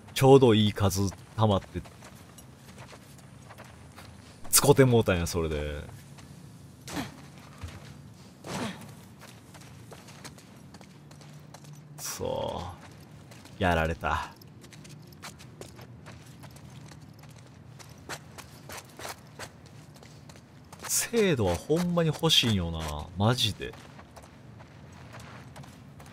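Footsteps tread on stone and concrete.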